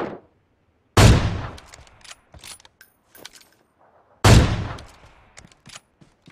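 A sniper rifle fires loud shots, each ringing out.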